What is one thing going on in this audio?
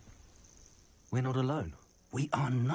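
A young man speaks calmly and close.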